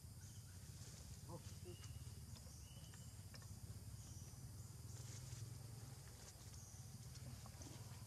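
Leaves rustle as young monkeys scamper through the undergrowth.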